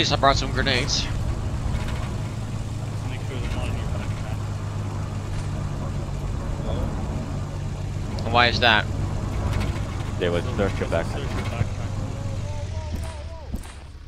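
A vehicle engine rumbles low and steady.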